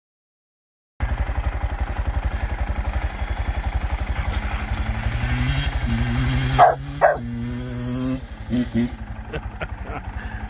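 A small motorcycle engine putters and revs in the distance.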